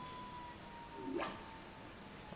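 A short electronic whoosh sounds.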